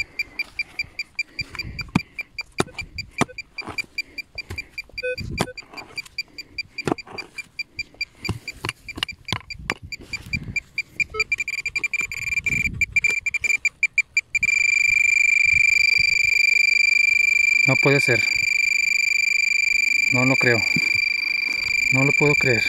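A metal detector beeps in fast pulses, then holds a steady high tone.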